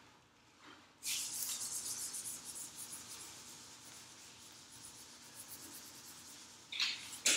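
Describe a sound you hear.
A marker squeaks and scratches across a whiteboard.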